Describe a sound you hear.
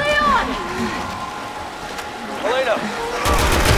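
Water sloshes and splashes as someone wades through it.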